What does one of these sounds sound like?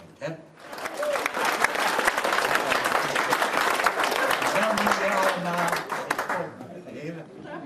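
An elderly man speaks into a microphone over loudspeakers in a large hall.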